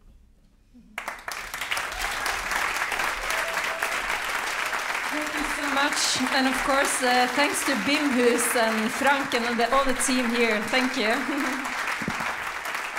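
An audience bursts into loud applause in a large hall.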